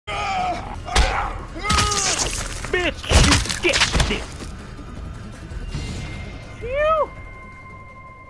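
A man grunts and groans with strain.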